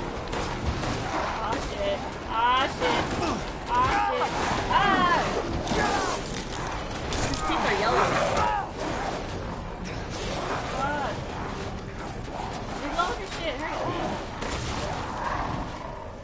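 A young woman talks through a microphone.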